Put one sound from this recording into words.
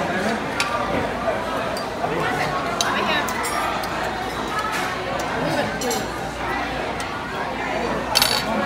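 A busy crowd of diners chatters all around, indoors.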